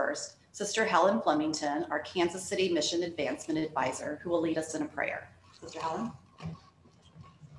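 A woman speaks calmly into a microphone in an echoing hall.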